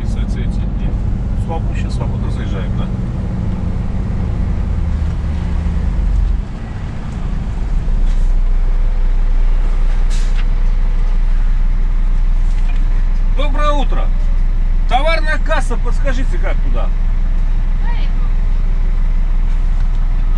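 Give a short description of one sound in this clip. A truck engine rumbles low and steadily from inside the cab.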